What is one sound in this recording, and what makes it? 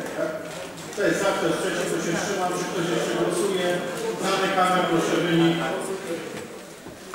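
A man speaks through a loudspeaker, echoing in the hall.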